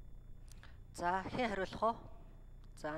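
A woman speaks briefly through a microphone in a large hall.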